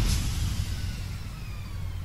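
An electric energy burst crackles and fades.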